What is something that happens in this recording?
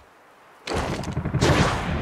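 A young man grunts with strain.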